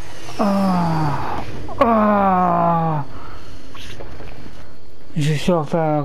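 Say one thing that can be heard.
A jet engine roars as a plane takes off.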